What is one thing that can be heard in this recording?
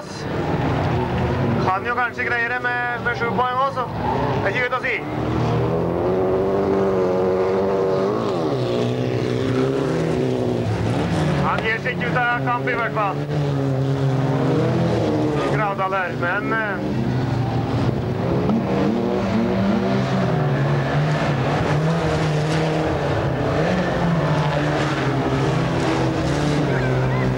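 Race car engines roar and rev loudly.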